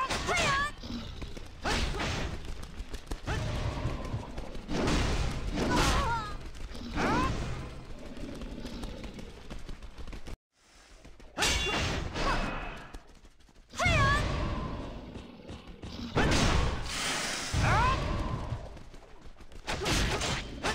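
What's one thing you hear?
Magic spells burst with loud whooshing blasts.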